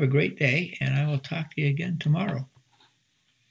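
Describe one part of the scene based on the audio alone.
An elderly man speaks calmly through a microphone on an online call.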